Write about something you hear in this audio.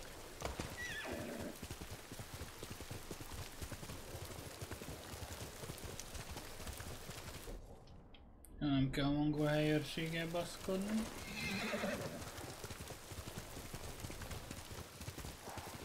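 A horse gallops with quick thudding hoofbeats.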